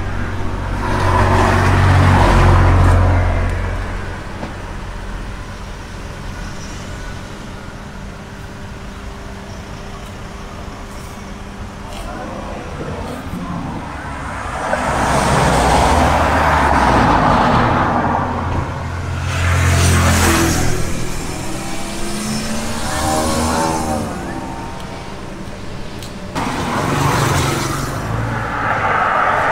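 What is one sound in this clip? A knife scrapes and slices through soft fruit flesh.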